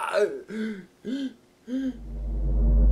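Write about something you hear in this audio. A young boy shouts in short, rising bursts close by.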